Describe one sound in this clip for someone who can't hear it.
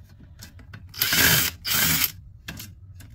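A cordless screwdriver whirs in two short bursts.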